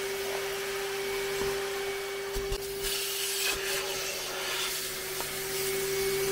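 A vacuum nozzle scrapes and sucks across fabric.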